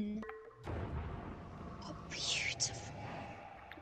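A deep, rumbling tone swells as a game portal opens.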